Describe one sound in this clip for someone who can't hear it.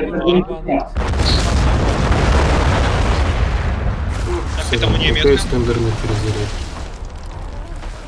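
A huge explosion booms and rumbles away.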